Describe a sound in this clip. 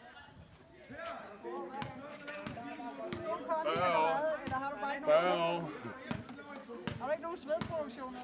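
Young men talk and call out to each other nearby, outdoors.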